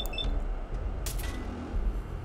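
A laser gun fires with a sharp zap.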